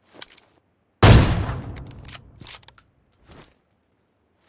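A bolt-action sniper rifle fires a single shot that echoes away.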